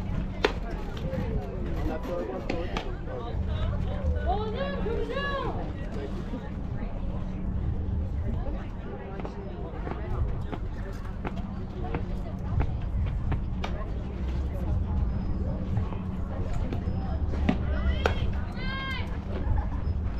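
Young women shout and cheer from the side of the field.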